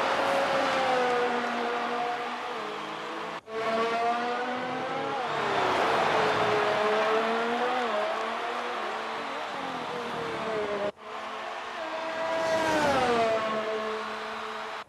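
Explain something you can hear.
A racing car's engine whines at high revs, rising and falling in pitch as it shifts gears.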